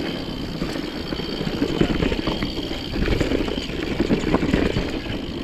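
A bike's chain and frame rattle over bumps.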